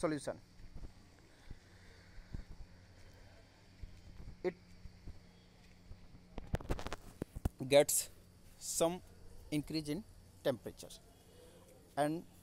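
A man speaks in short bursts, explaining in a lecturing voice.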